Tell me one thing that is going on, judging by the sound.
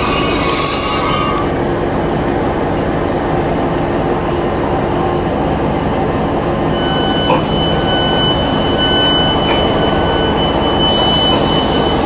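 A train rumbles steadily as it rolls slowly.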